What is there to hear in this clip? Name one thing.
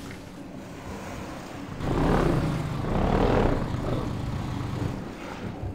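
A small motor engine rumbles and revs up and down.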